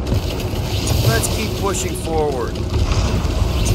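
Energy weapons fire in quick bursts.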